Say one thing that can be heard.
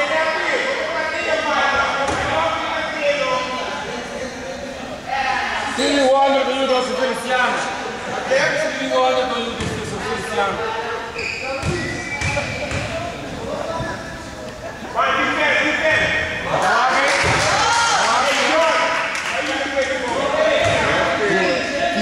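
Young people talk and shout in a large echoing hall.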